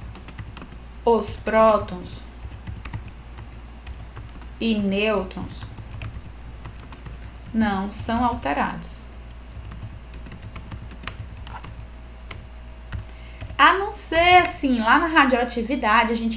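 A young woman speaks calmly in short phrases, close to a microphone.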